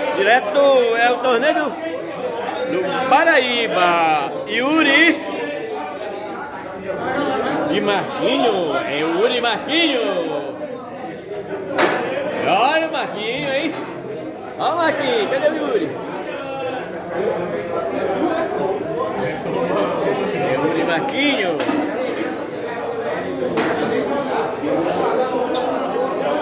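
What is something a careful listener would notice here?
Several men talk and call out loudly close by.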